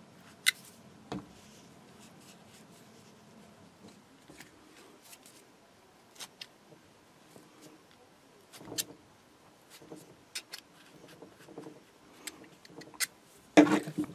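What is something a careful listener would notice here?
Small metal parts click and scrape.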